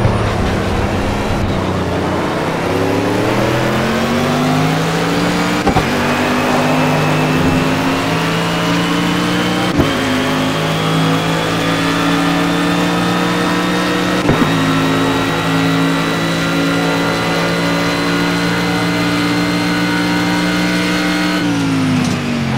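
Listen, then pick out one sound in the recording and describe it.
A racing car engine roars loudly, its pitch climbing steadily as it speeds up through the gears.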